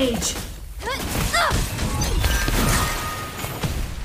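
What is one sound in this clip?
Magic blasts crackle and boom in a fight.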